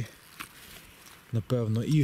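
A knife cuts through a mushroom stem.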